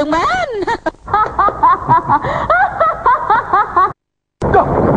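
A young woman laughs loudly and happily close by.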